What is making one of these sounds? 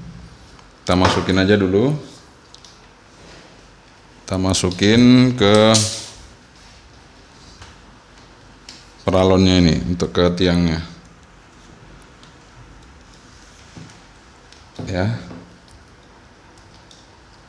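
Plastic pipe fittings creak and click as they are pushed together.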